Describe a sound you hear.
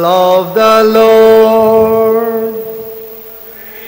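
A man chants slowly through a microphone in an echoing hall.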